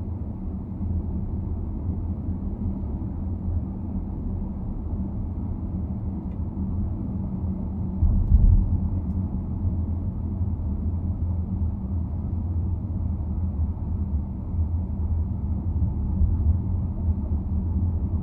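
Tyres roll over the road surface with a low rumble.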